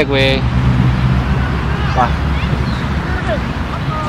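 A young man talks nearby outdoors.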